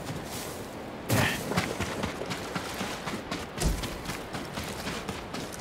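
Hooves splash through shallow water.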